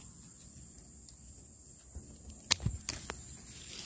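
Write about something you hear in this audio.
Scissors snip through a tough fungus.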